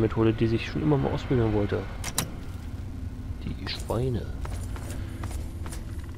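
A lock pick clicks and scrapes inside a lock.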